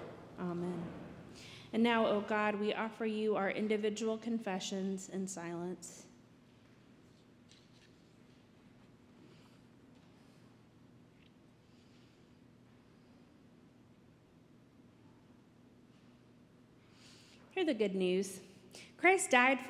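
A young woman speaks calmly through a microphone in a large echoing hall.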